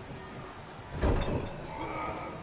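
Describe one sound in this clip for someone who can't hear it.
A heavy body slams with a thud.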